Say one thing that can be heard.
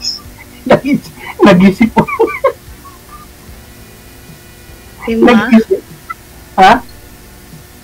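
A middle-aged man laughs over an online call.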